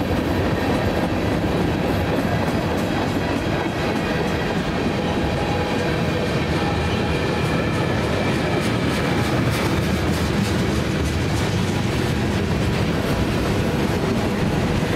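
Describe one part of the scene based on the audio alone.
A freight train rumbles steadily past nearby.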